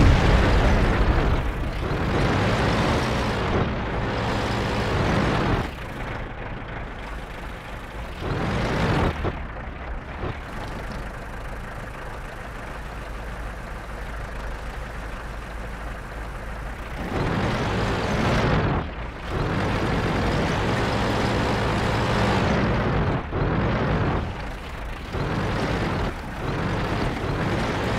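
A heavy tank engine rumbles and roars.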